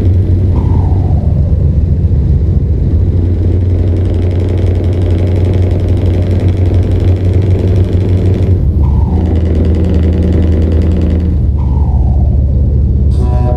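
Tyres rumble on a road.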